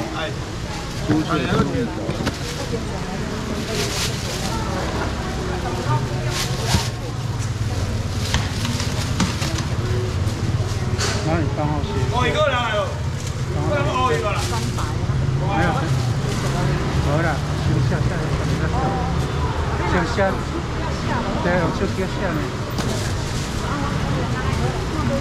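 Several adults talk with animation nearby.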